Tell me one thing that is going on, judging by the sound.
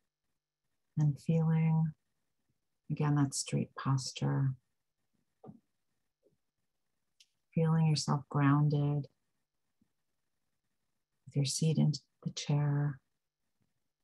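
A woman speaks calmly over an online call, with pauses between phrases.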